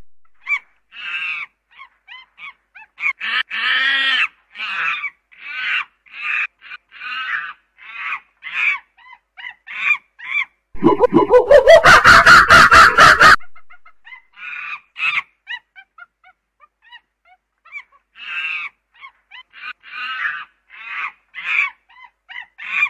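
A chimpanzee screams and hoots loudly, close by.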